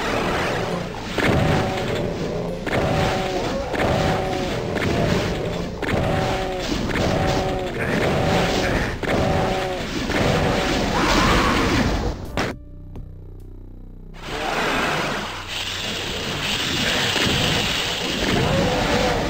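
Shotgun blasts fire again and again, each followed by a clattering reload.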